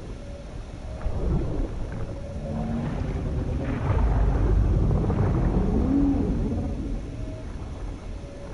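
Deep underwater rumbling swells and fades.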